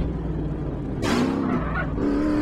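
A motorbike crashes with a loud thud.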